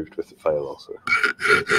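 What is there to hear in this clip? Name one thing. A knife blade scrapes across a sharpening stone.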